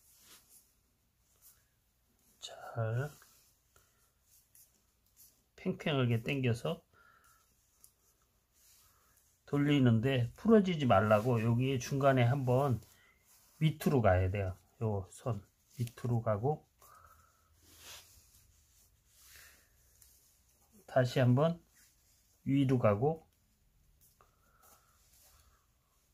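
Thin twine rustles softly as it is wound and knotted.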